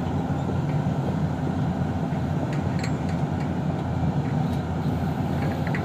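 A diesel crawler excavator engine rumbles under load.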